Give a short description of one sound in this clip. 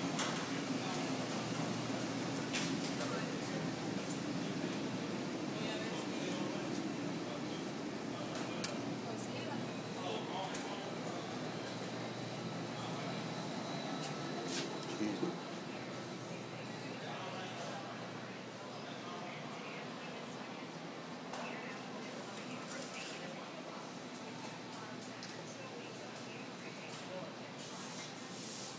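Indistinct voices of people murmur in a large room.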